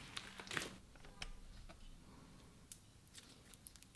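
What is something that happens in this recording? Soft slime squishes and crackles between fingers.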